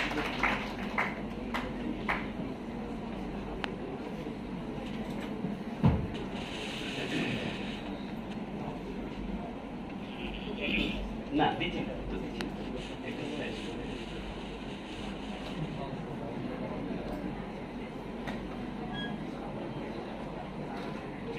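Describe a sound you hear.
Several men talk quietly in the background of an echoing hall.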